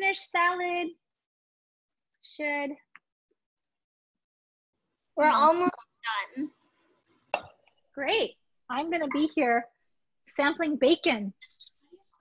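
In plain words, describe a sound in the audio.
A young woman speaks through an online call, in short bursts with pauses.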